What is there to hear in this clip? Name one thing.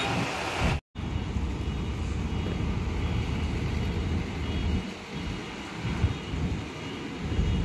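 A road roller's engine hums in the distance.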